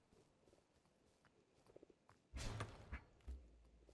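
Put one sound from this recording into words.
A tool strikes and breaks dirt blocks with dull thuds.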